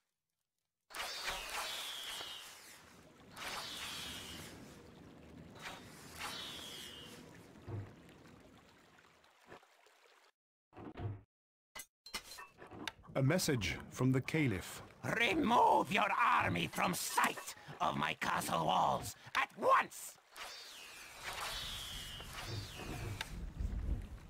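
Volleys of arrows whoosh through the air.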